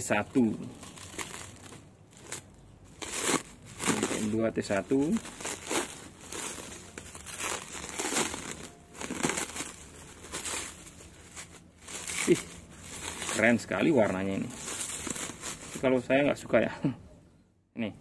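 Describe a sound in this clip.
Plastic wrapping crinkles and rustles as hands unwrap it.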